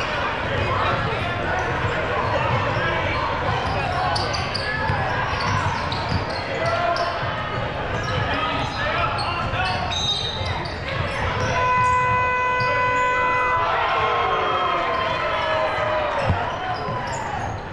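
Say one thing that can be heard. A crowd of spectators talks and cheers in a large echoing gym.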